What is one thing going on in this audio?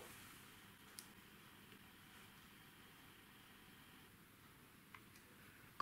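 A plastic set square clicks against paper.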